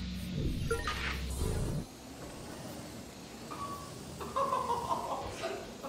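A small drone whirs as it hovers and flies.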